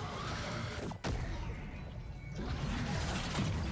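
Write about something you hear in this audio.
Magic blasts and whooshes ring out from a video game.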